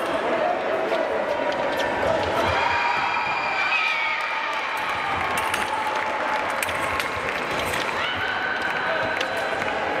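Metal fencing blades clink and clash sharply.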